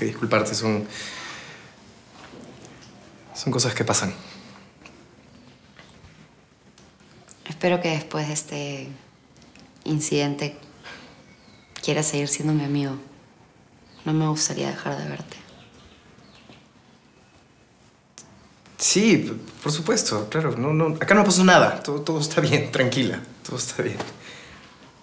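A young man speaks calmly and softly up close.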